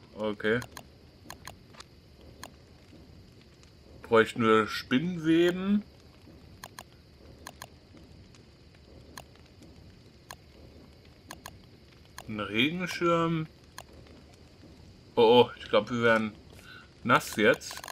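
Soft clicks tick now and then as a game menu is scrolled.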